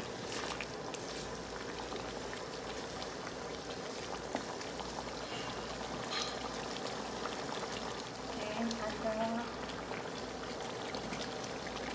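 A stew bubbles and simmers in a pan.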